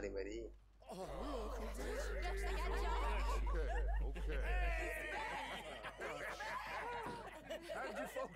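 Several men and women talk over one another with excitement.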